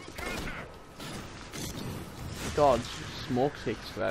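Fiery blasts whoosh and crackle.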